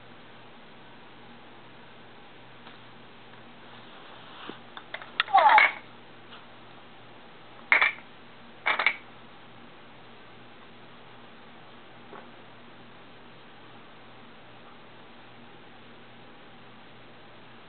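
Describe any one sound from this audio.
A plastic toy rattles as a baby shakes it.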